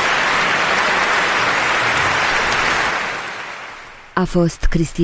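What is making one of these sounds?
An audience applauds loudly in a large hall and the applause fades.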